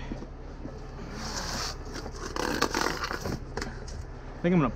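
Boots scuff and step on concrete.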